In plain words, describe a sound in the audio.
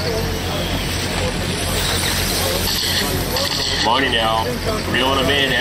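Small radio-controlled cars whine as they race past outdoors.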